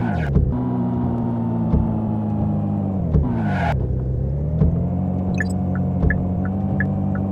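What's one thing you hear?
A small hatchback's engine hums as it slows down and then picks up speed.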